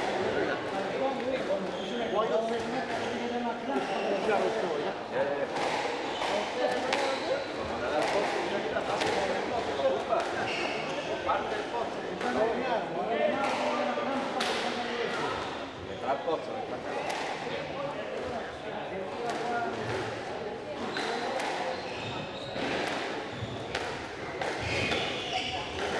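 A squash ball smacks sharply against the walls in an echoing hall.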